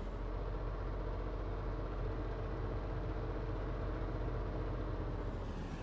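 A car engine hums steadily as the car drives along.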